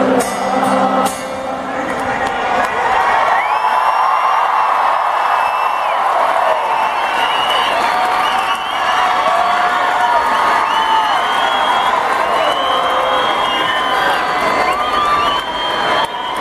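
A large crowd cheers and screams nearby.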